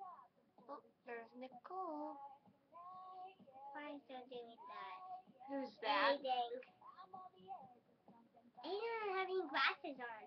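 A young girl speaks in a small voice close by.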